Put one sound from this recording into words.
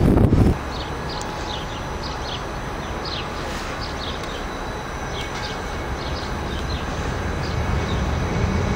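Train brakes squeal in short high bursts.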